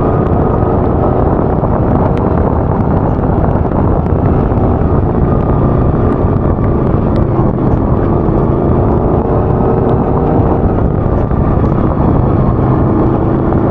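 A small engine roars loudly and steadily close by.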